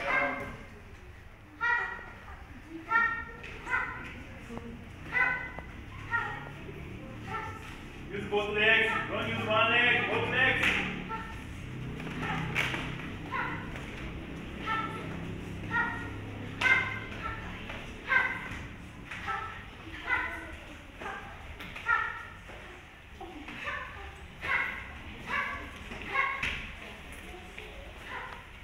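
Bare feet thump and shuffle on a wooden floor.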